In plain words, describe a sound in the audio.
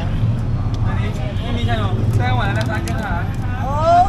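A knife taps and chips at a coconut shell.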